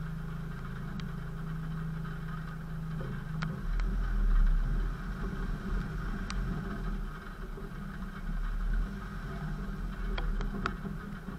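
Stones knock against the underside of a vehicle.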